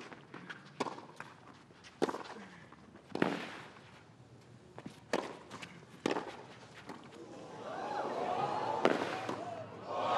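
Tennis balls are struck hard with rackets, back and forth.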